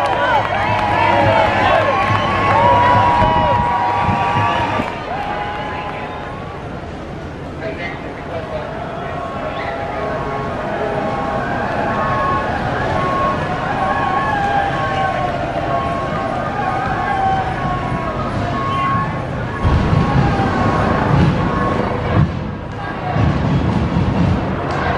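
A crowd of men and women shouts and chants outdoors.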